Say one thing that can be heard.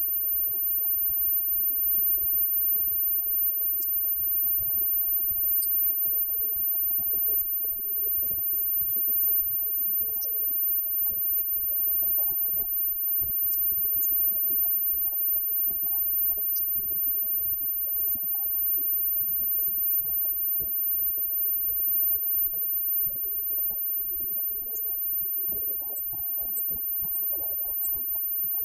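Electric guitars play loudly in a live band.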